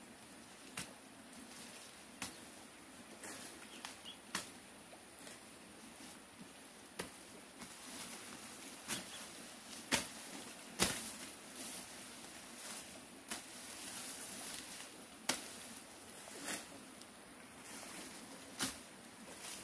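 A blade chops through tall grass stalks in sharp strokes.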